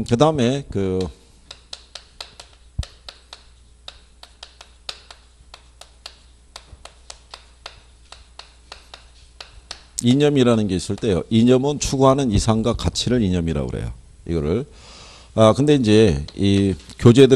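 A man lectures through a microphone in a clear, animated voice.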